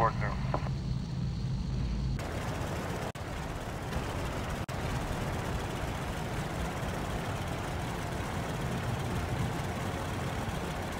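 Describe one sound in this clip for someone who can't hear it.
A propeller airplane's engines roar steadily as it rolls down a runway.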